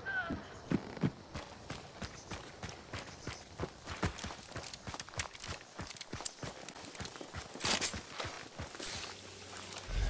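Footsteps crunch quickly over dry leaves and dirt.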